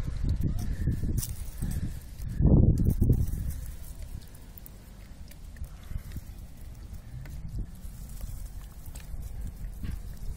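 Hands rustle and crackle through dry seaweed close by.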